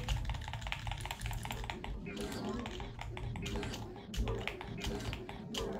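Quick electronic zaps and clicks repeat rapidly as small game workers gather crystals.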